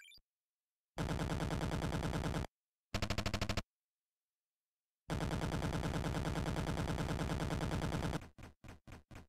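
Electronic beeps chatter quickly in short bursts.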